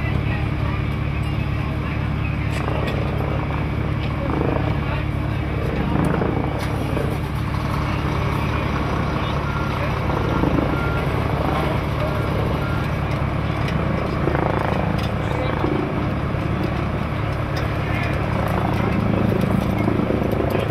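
A diesel engine idles with a steady low rumble.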